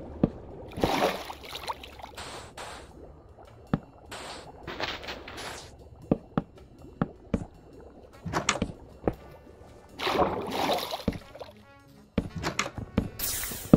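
Blocks thud softly as they are placed one after another.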